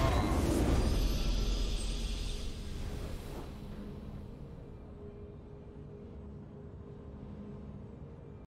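A triumphant fanfare rings out and slowly fades.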